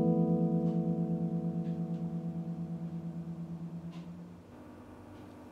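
An electric guitar chord rings out with a wavering tremolo and slowly fades.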